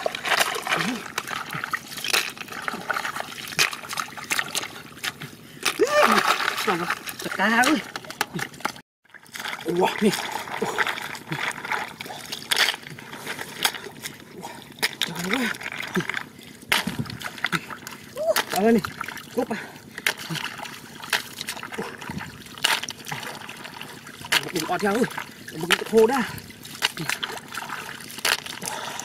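Water splashes and sloshes as hands dig through shallow mud.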